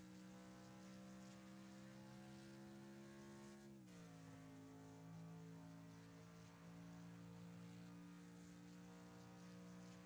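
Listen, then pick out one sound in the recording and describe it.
A racing car engine roars steadily at high speed, dropping in pitch as it shifts gear and then climbing again.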